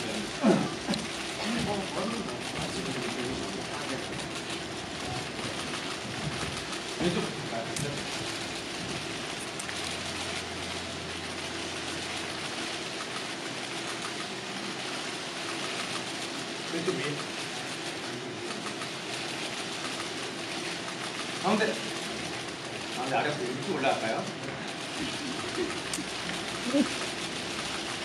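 Young men speak through loudspeakers in a large echoing space.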